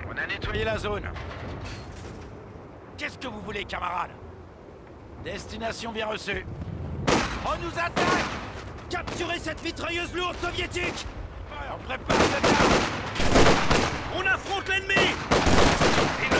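Gunfire and explosions rumble in a distant battle.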